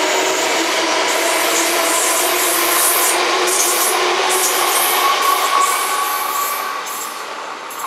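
A train's motors whine steadily as it passes.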